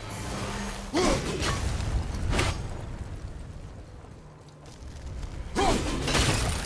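An axe strikes stone with a heavy thud.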